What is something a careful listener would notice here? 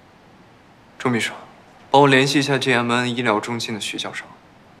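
A young man speaks calmly into a phone, close by.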